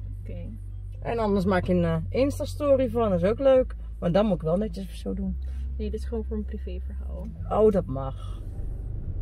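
A young woman talks with animation close by inside a car.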